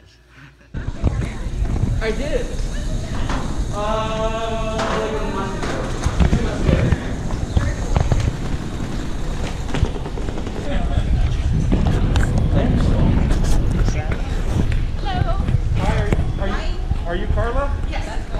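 Suitcase wheels roll and rattle over the floor and pavement.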